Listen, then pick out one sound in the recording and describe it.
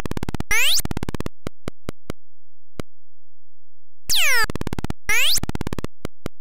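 Sweeping electronic zaps swoop up and down.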